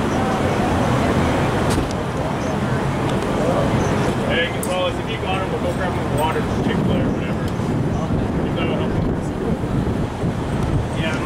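Street traffic rumbles in the background.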